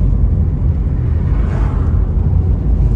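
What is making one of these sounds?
A van passes close by in the other direction with a brief whoosh.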